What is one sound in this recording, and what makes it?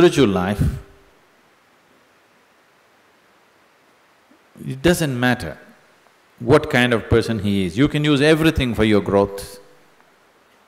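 An elderly man speaks calmly into a close microphone, with pauses between phrases.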